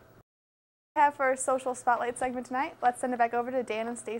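A young woman speaks brightly and clearly into a microphone.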